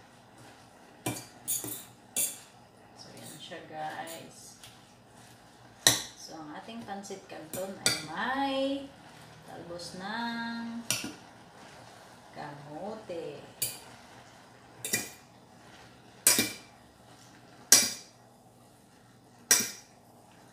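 A metal utensil clinks against a pot.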